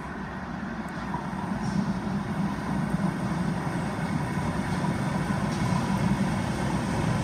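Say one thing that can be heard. A tram approaches with a rising, rumbling roar of wheels on rails.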